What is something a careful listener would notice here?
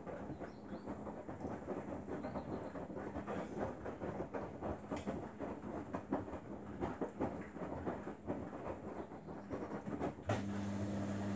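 Wet laundry and water slosh and tumble in a turning front-loading washing machine drum.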